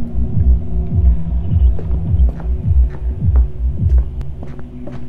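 Heavy footsteps thud steadily on stone.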